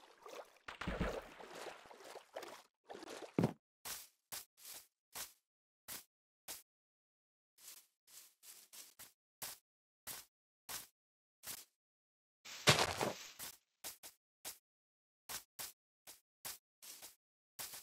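Footsteps rustle through leaves at a steady walking pace.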